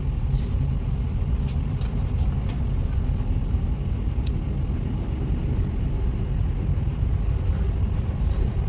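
A tram rumbles along the rails, approaching.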